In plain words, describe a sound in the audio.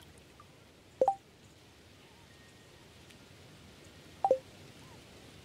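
A short game chime sounds twice.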